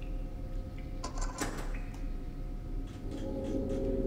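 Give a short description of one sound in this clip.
A heavy door creaks open slowly.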